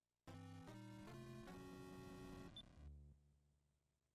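A short electronic game jingle plays in rising steps.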